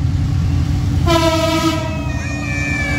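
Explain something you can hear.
A train horn blares loudly.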